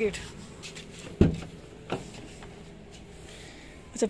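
A car door opens with a click and a thud.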